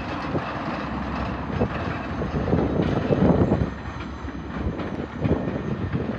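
Train wheels clatter on the rails.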